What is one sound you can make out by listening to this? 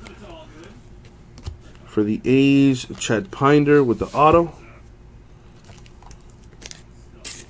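Trading cards rustle and flick softly in hands.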